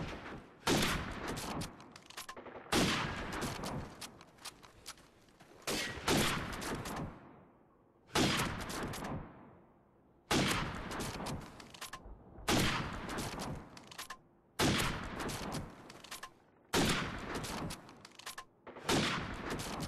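A rifle bolt clacks between shots.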